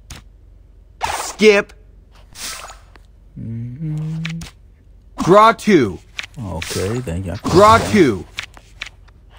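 Cartoonish game sound effects whoosh and chime as cards are played.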